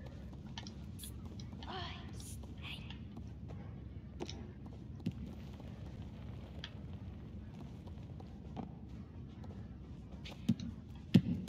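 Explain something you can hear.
Small footsteps patter on a wooden floor.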